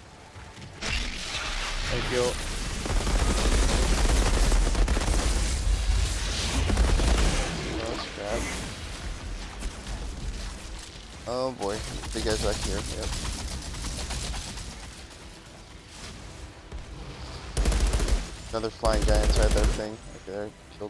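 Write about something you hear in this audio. Gunfire bursts and booms loudly in a game.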